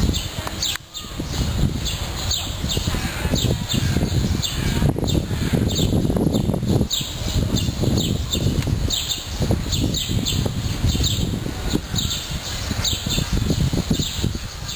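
Wind blows outdoors across the microphone.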